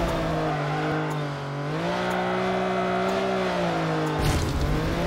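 A racing car engine roars steadily, its pitch dipping and rising.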